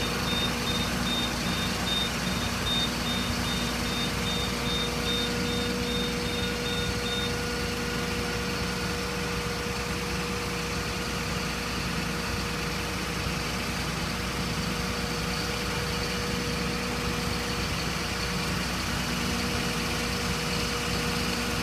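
A ladder extends with a whining hydraulic drone.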